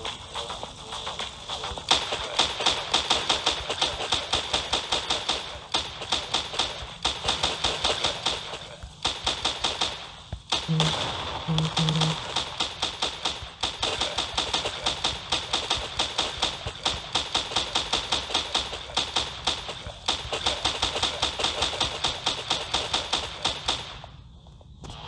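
Rapid pistol shots from a game fire in quick bursts.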